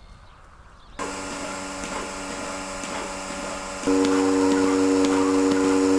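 A milking machine pump hums steadily.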